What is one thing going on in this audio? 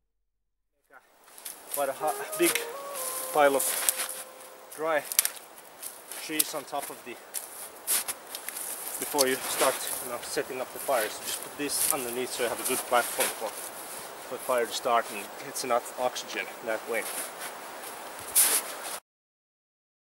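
Twigs crackle and rustle as they are broken and piled.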